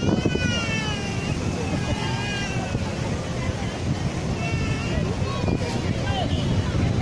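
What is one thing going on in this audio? A crowd of spectators shouts and calls out in the distance outdoors.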